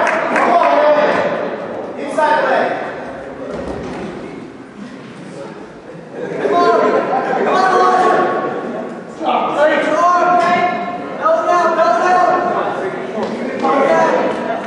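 A crowd of spectators shouts and cheers loudly in a large echoing gym.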